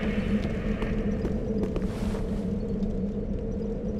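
Footsteps crunch over loose stone rubble.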